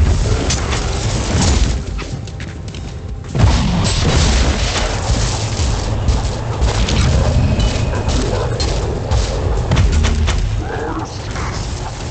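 An energy bolt crackles through the air.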